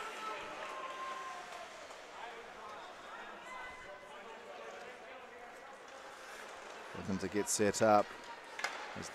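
A crowd of spectators murmurs in a large echoing arena.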